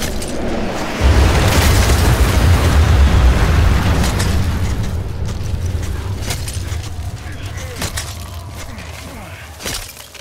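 Strong wind roars and gusts, blowing snow.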